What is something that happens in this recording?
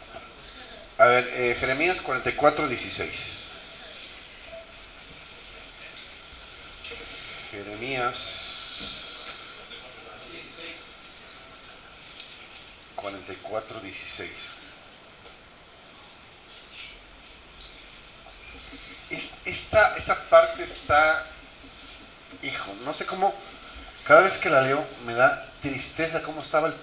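An older man speaks into a microphone through a loudspeaker, calmly with pauses.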